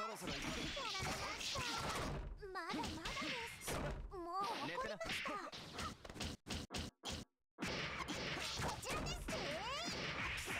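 Whooshing attack effects swish and crackle.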